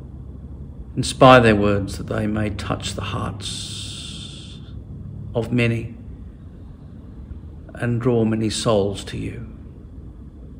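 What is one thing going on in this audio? A middle-aged man speaks slowly and softly, pausing often, close to a microphone.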